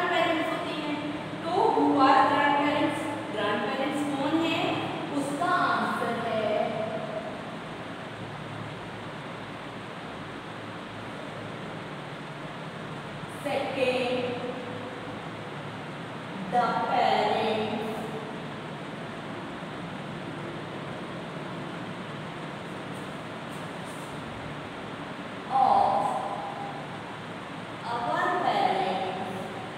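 A woman speaks calmly nearby, explaining in short bursts.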